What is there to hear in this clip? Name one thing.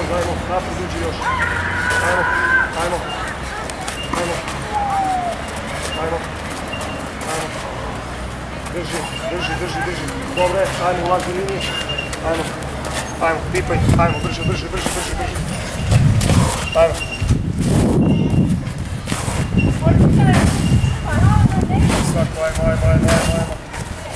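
Shoes shuffle and scrape on a clay court.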